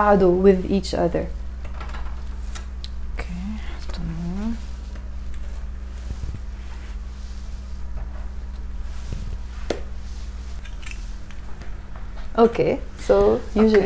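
Metal tongs clink against a baking tray.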